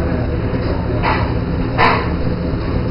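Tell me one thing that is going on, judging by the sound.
Utensils clatter on metal counters.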